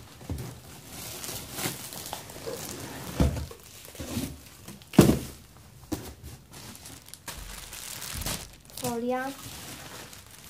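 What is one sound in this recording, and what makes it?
Plastic wrapping rustles and crinkles.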